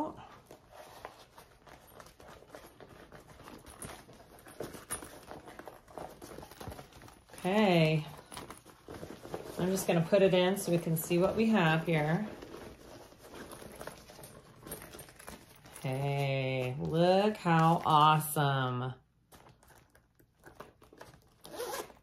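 Fabric rustles as a bag is handled.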